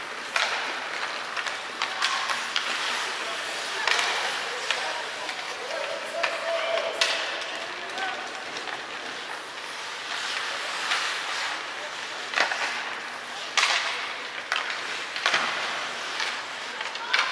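Hockey sticks and pucks clack sharply now and then.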